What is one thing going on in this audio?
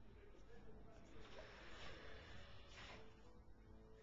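A spell swirls with a whooshing magical effect.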